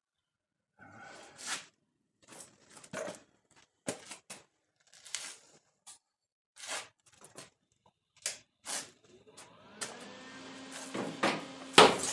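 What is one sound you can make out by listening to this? Metal clanks and scrapes close by.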